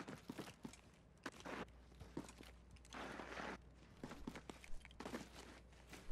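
Footsteps scuff across a hard floor.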